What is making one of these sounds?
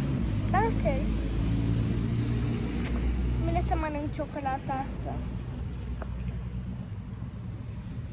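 A young girl talks close to the microphone.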